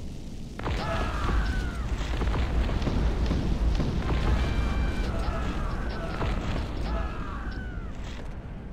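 Explosions rumble deeply.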